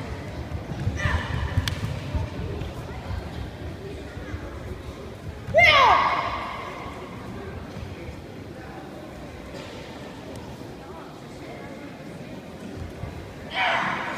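A young boy gives a sharp karate shout in a large echoing hall.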